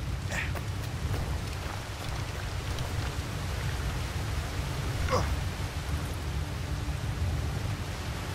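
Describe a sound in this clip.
Footsteps crunch on snow and rock.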